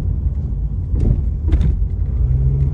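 A car thumps twice over a speed bump.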